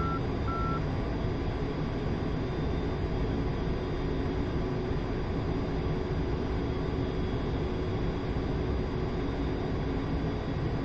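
A jet engine roars steadily from inside a cockpit.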